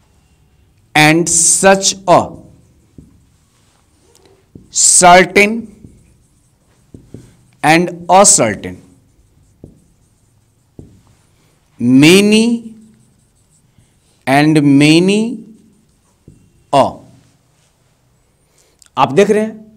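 A man speaks slowly and clearly, like a teacher, close by.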